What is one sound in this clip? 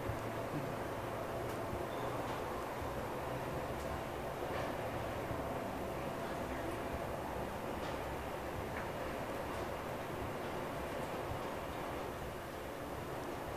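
An elevator hums and rumbles steadily as it rises.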